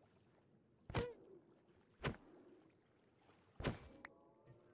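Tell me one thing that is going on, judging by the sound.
A creature is struck with loud hits.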